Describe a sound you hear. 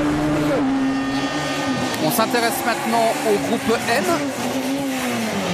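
A rally car races past close by, its engine snarling.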